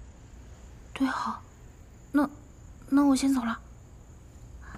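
A young woman answers briefly in a hesitant voice.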